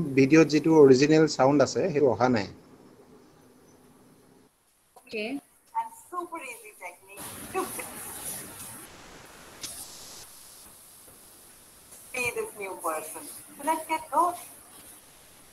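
A young woman talks with animation, heard through a computer speaker.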